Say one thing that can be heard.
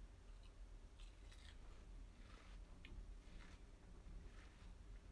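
A young woman chews food with soft, wet mouth sounds close by.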